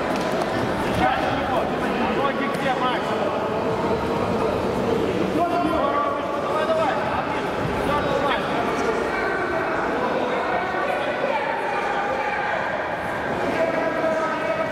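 A crowd of spectators shouts and talks in a large echoing hall.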